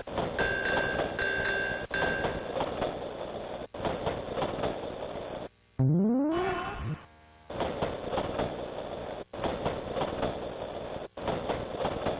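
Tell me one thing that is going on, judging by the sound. A train rattles and clatters past on the tracks.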